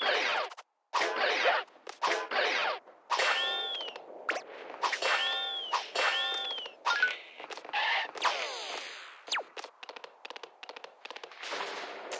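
Cartoonish video game sound effects pop, whoosh and chime in quick bursts.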